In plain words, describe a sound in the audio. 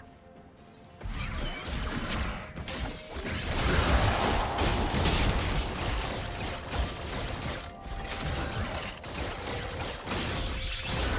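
Video game weapons clash and strike in rapid hits.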